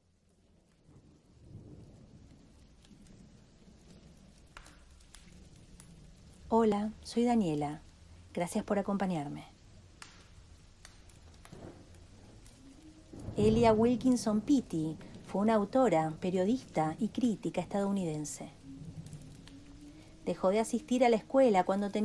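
A fire crackles softly in a fireplace.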